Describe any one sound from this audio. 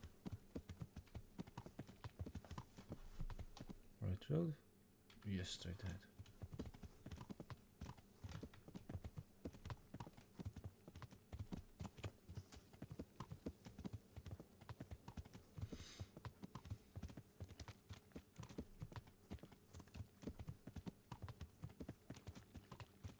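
Horse hooves thud steadily on a dirt road.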